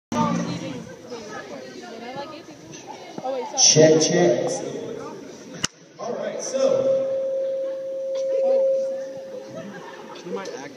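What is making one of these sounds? A young man sings into a microphone over loudspeakers in a large echoing hall.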